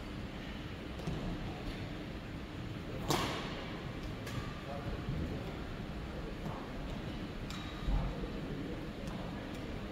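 Shuttlecocks are struck with rackets, giving sharp pops in a large echoing hall.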